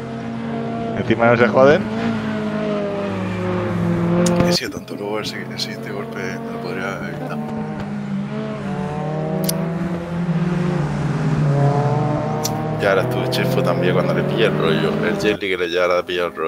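A racing car engine roars steadily, rising and falling in pitch.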